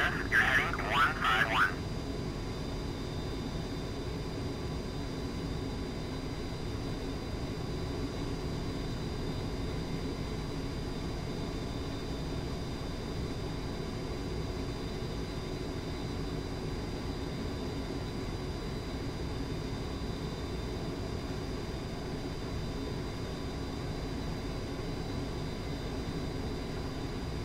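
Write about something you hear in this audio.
A jet engine roars steadily and low throughout.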